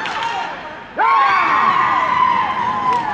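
A crowd of spectators suddenly bursts into loud cheering and screaming.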